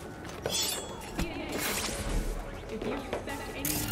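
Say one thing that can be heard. A knife swipes through the air.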